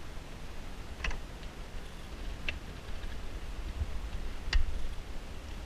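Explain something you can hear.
Plastic parts click and rattle close by.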